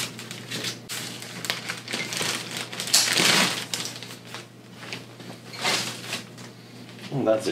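Cardboard scrapes and rustles as a box is handled.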